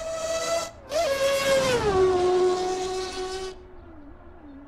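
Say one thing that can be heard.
A racing car roars past close by.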